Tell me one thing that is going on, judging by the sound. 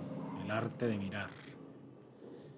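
A man speaks briefly into a microphone with animation.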